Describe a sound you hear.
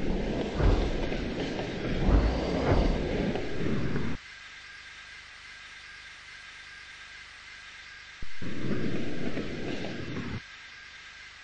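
Steam hisses loudly from a locomotive in bursts.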